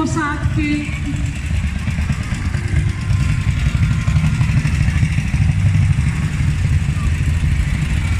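Old motorcycle engines rumble and putter loudly close by.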